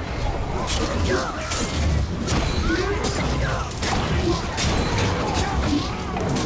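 Creatures grunt and snarl in combat.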